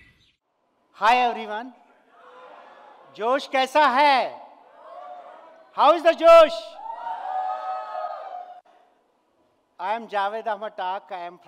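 A man speaks cheerfully into a microphone.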